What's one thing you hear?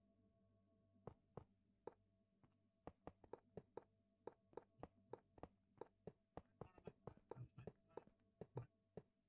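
Blocks thud into place in quick succession.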